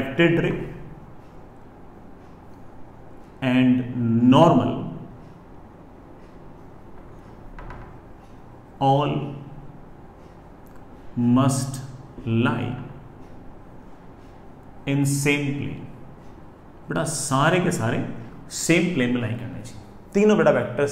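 A man speaks calmly and clearly, pausing between phrases.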